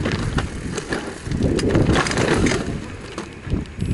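A bicycle crashes down onto stony ground.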